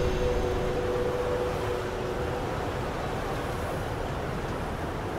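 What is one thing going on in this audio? Strong wind roars steadily outdoors with a low rumble.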